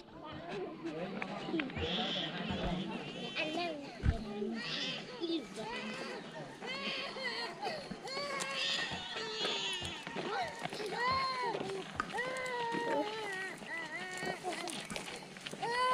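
Young children chatter and call out nearby, outdoors.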